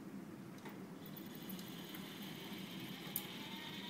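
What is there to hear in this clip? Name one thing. A robotic arm whirs as its motors move.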